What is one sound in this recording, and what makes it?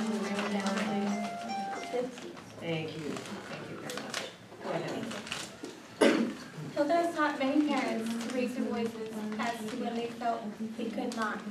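A young woman speaks calmly in a room with slight echo.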